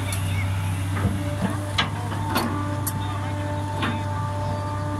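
An excavator bucket knocks and scrapes against earth.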